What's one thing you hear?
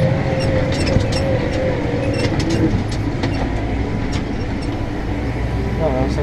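A tractor's wheels rattle and clatter over rough ground.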